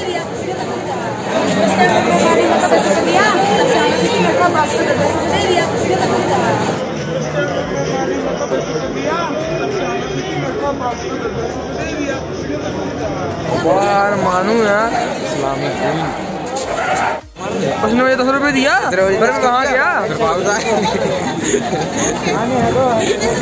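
Men talk loudly close by.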